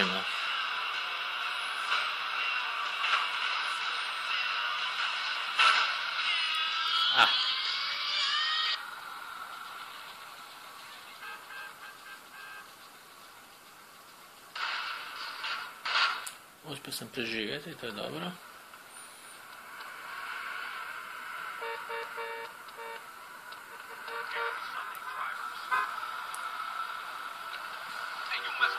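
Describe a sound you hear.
Video game music and effects play from a small phone speaker.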